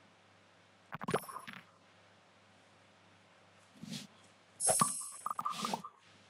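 Video game sound effects chime and jingle.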